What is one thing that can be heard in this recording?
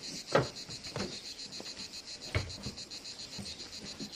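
Objects thump into a car boot.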